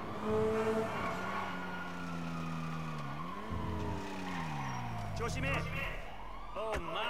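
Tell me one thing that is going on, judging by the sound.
A sports car engine revs and drones, rising and falling in pitch.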